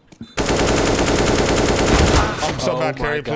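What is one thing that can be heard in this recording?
A rifle fires a long rapid burst.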